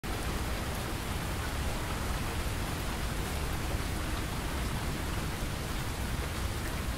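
Steady rain patters on wet pavement and splashes into puddles.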